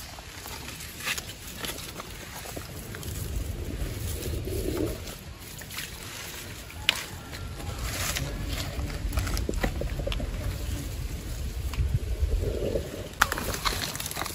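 Hands rustle through grass and leaves.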